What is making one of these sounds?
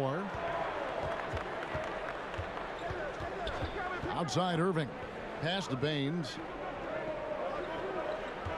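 A crowd murmurs in a large arena.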